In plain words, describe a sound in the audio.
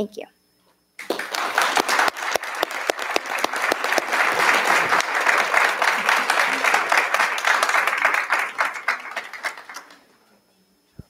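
An audience claps loudly in a room.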